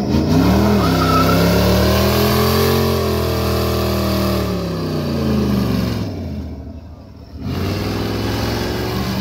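Car tyres spin and squeal on asphalt in a burnout.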